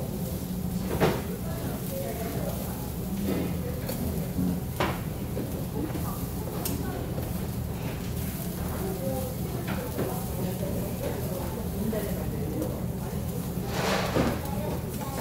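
Metal tongs clink against a grill.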